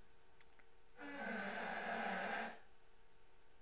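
A door creaks slowly open.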